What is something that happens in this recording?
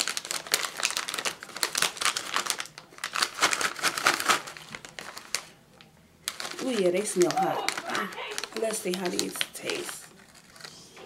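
A crinkly plastic snack bag rustles and crackles close by.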